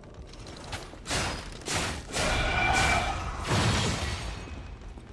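Blades clash and sparks burst loudly in a fight.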